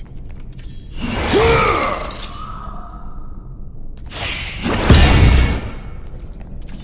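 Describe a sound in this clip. A magical burst whooshes and booms with a deep rumble.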